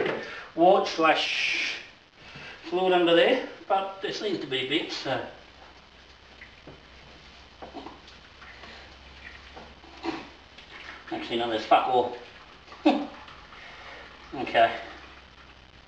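A man talks casually nearby, in short bursts.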